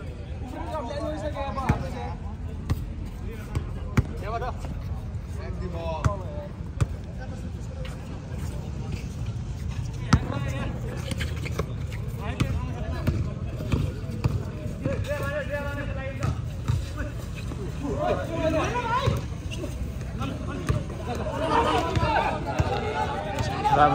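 A crowd of spectators chatters and cheers nearby.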